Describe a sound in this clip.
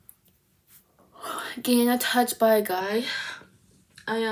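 A young woman sings loudly and strains her voice close by.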